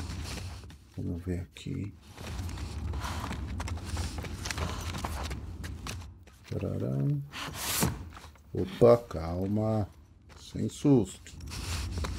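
A man talks into a microphone with animation, close up.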